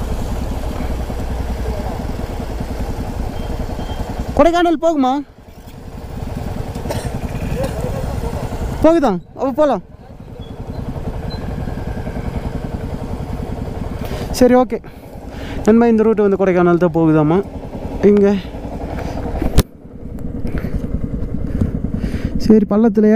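A motorcycle engine idles with a low, steady rumble.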